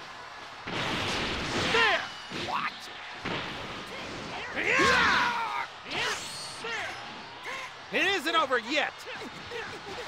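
Energy blasts whoosh and crackle in bursts.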